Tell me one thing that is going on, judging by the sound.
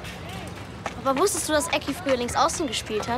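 A young boy speaks nearby.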